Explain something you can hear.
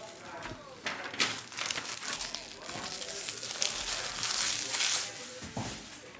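Foil card wrappers crinkle and tear as packs are opened.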